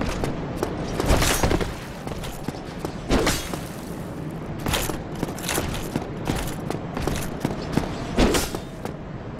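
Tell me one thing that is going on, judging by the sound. Weapons clash and thud against a shield.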